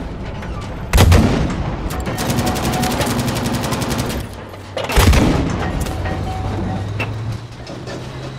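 A tank's cannon fires with loud booming blasts.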